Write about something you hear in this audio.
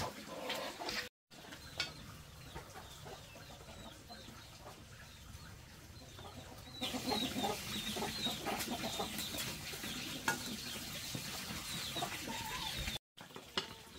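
Water bubbles at a boil in a pot.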